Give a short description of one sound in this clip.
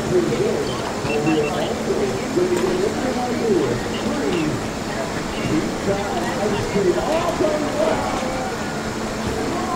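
A large ship's engine hums low and steady.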